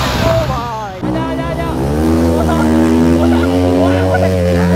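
Motorcycle engines drone and rev close by.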